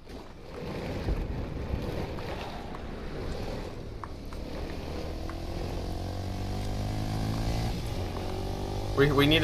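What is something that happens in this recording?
A vehicle engine hums and revs up.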